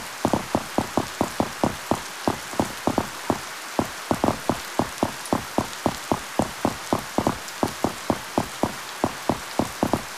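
Footsteps thud quickly and evenly on stone.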